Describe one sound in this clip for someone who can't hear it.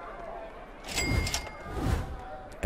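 A game menu gives a bright chime.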